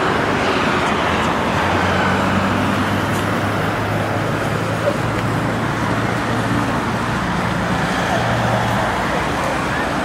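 Traffic drives past on a nearby road.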